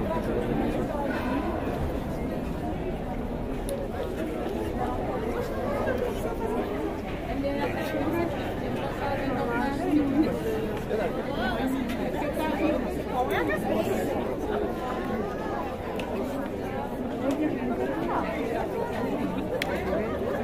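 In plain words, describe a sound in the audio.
A crowd of men and women talk over one another outdoors.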